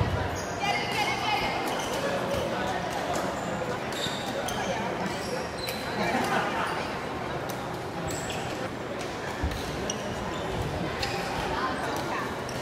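Sports shoes squeak sharply on the court floor.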